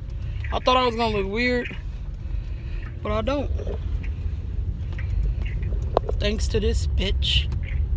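A car engine hums low and steady inside a moving car.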